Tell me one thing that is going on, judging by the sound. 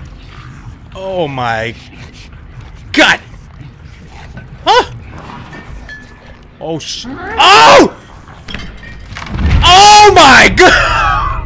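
A man speaks with animation into a microphone, close up, sometimes exclaiming loudly.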